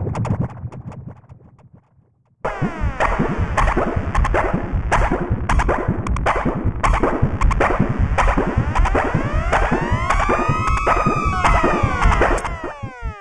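An electronic synthesizer plays a fast, pulsing pattern with sweeping, gliding tones.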